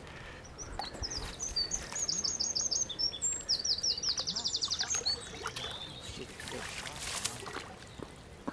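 A fish thrashes and splashes in shallow water.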